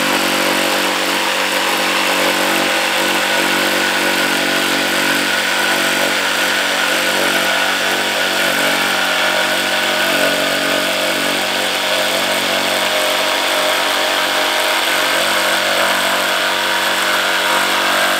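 A jigsaw buzzes steadily as it cuts through a board.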